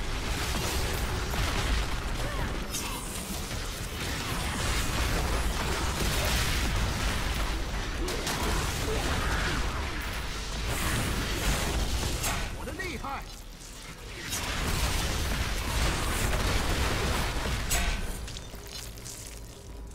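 Game spells crackle and explode in a noisy fight.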